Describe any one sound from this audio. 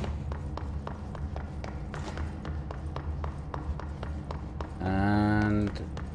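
Quick footsteps run across a hard floor in a large echoing hall.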